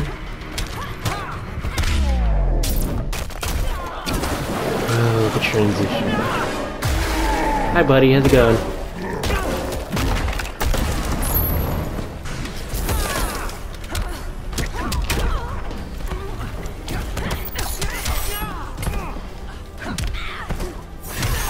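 Heavy punches and kicks land with loud thuds and smacks.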